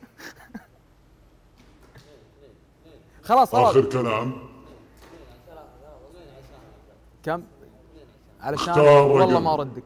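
A young man talks with animation, heard through a microphone.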